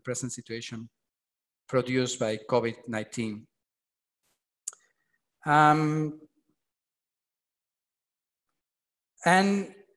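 A man speaks calmly with pauses, heard through an online call.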